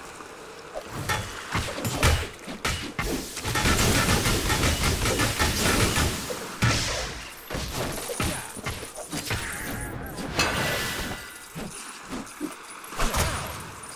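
Game combat sounds clash and burst rapidly.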